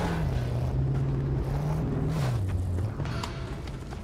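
A car engine roars loudly.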